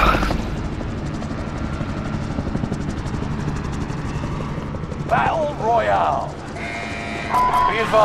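Helicopter rotors thump steadily close by.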